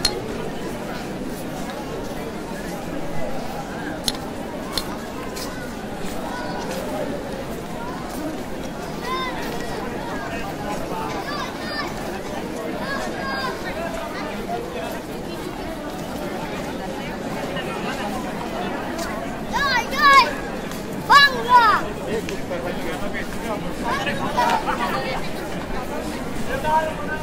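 A large crowd of men murmurs and chatters outdoors at night.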